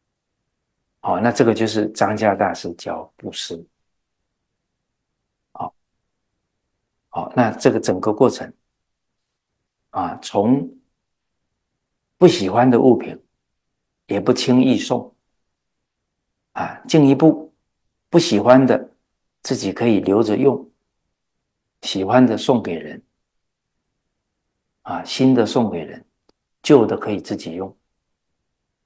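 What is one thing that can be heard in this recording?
An elderly man speaks calmly and slowly into a close microphone, pausing between phrases.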